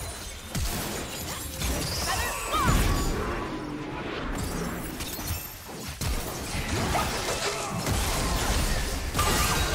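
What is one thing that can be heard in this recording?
Magic spells whoosh, crackle and burst in a fast fight.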